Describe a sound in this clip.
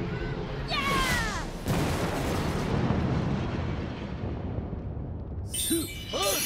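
A loud whoosh rushes past.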